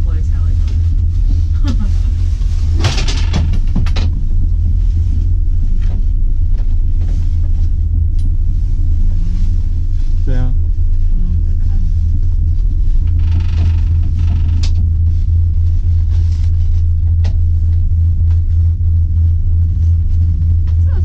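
A gondola cabin hums and rattles steadily as it rides along its cable.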